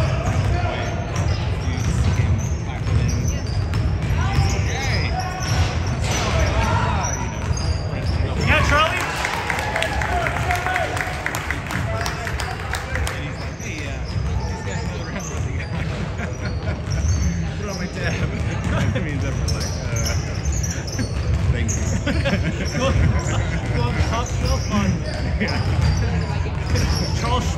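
Young players call out to each other in an echoing gym.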